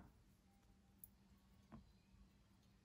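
A small metal earring clinks softly between fingers.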